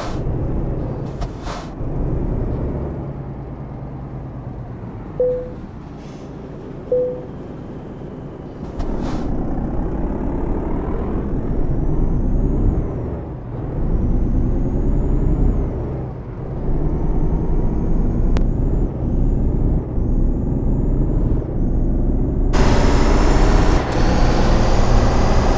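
A truck engine rumbles steadily and rises in pitch as the truck speeds up.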